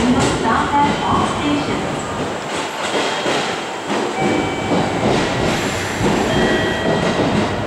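A distant train pulls away from a station.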